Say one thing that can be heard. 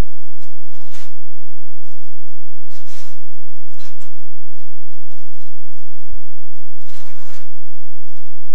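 Wrapping paper rustles and crinkles in short bursts.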